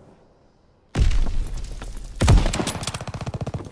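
A rifle fires a loud, echoing shot.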